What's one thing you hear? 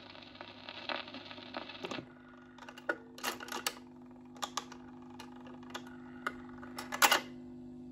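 A record player's motor hums steadily.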